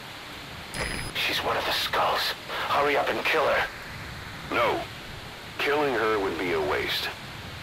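A man speaks in a low, rough voice.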